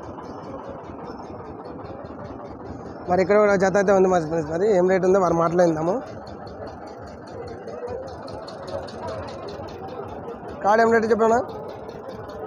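A crowd chatters faintly in the background outdoors.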